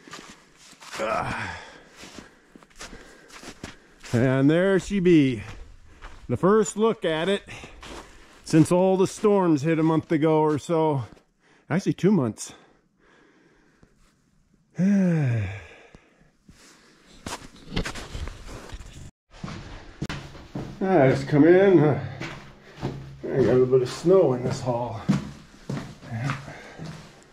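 A middle-aged man talks calmly close to a microphone.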